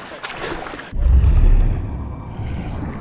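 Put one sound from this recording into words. A body plunges underwater with a deep muffled whoosh.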